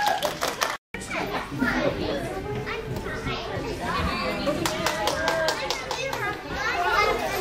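Young children chatter and squeal in an echoing room.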